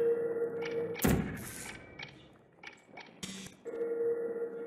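A sci-fi gun fires with a sharp electric zap.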